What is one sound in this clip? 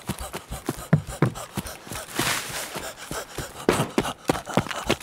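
Footsteps run through tall grass.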